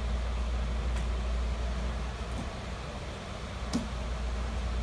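A child's bare feet thump on a padded mat.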